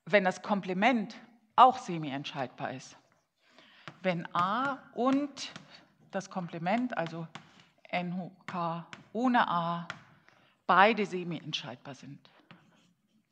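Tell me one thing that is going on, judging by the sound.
A woman speaks calmly, heard through a microphone in an echoing room.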